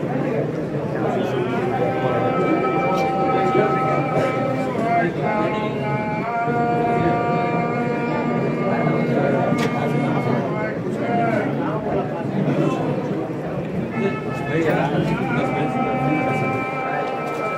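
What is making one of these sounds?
A man chants in long, drawn-out tones.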